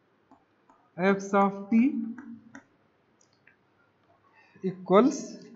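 A man speaks calmly and clearly, as if lecturing, close to a microphone.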